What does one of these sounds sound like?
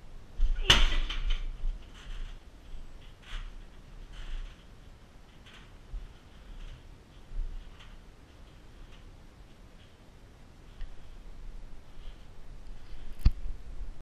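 A punching bag's chain creaks and rattles as the bag swings.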